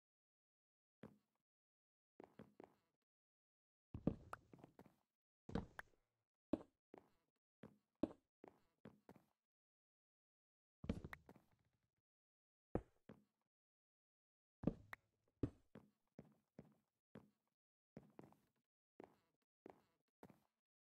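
Blocks are broken and placed with short knocking thuds.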